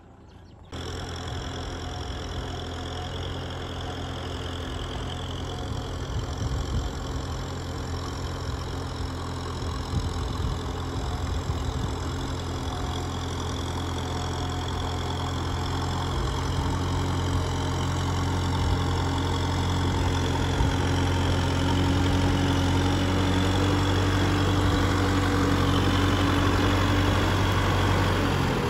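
A tractor engine rumbles steadily nearby, growing louder as it approaches.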